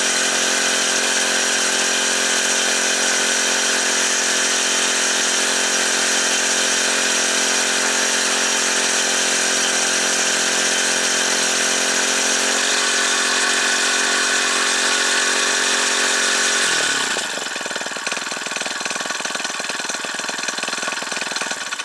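A small petrol engine drones loudly close by, then drops to a lower, rougher idle.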